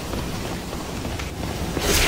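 Heavy footsteps climb stone steps.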